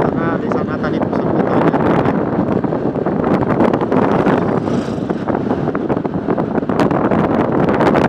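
A motorcycle engine runs at cruising speed.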